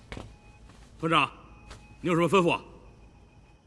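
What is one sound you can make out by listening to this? Two men shout a short, loud reply together.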